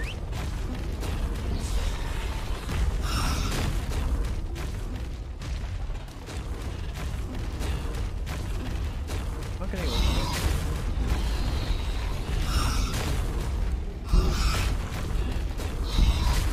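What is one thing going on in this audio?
Large wings beat heavily in the air.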